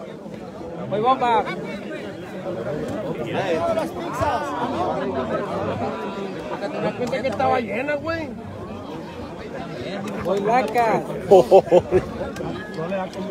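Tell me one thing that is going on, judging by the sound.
Men shout and cheer loudly close by.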